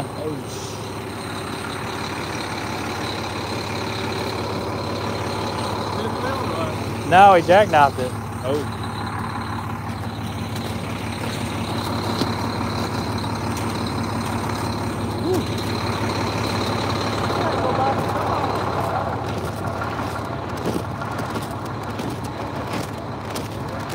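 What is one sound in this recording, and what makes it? A man talks close by, now and then calling out loudly.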